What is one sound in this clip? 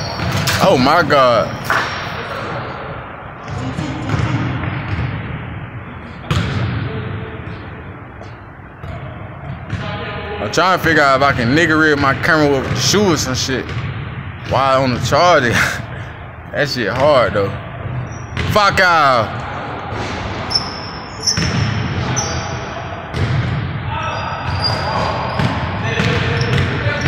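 A basketball bounces on a hardwood court in a large echoing gym.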